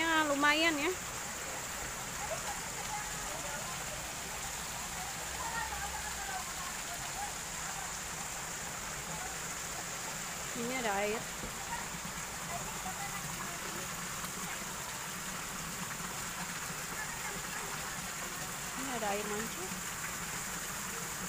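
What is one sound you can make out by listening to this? Fountain jets splash steadily into a pool.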